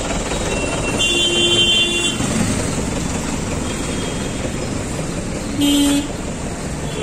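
A vehicle horn honks briefly.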